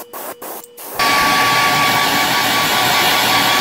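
An airbrush hisses as it sprays.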